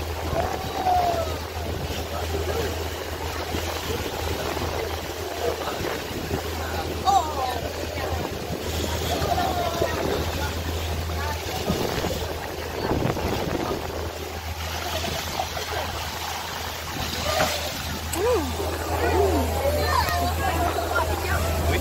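Water splashes and rushes against the side of a moving boat.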